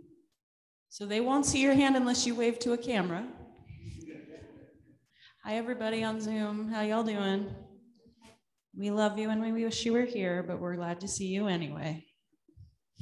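A woman sings a slow, drawn-out melody through a microphone, echoing in a large room.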